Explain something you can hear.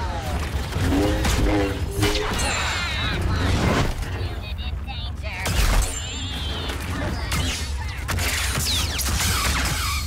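Sparks crackle as blaster bolts strike a lightsaber.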